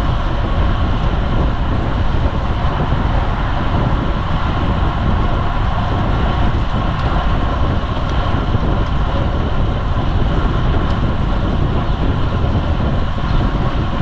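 Bicycle tyres hum on smooth road.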